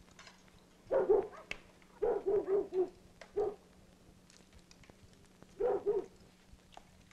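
A man speaks briefly in a low voice, close by.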